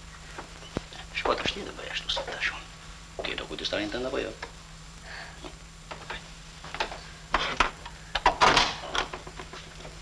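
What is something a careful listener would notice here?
A middle-aged man speaks.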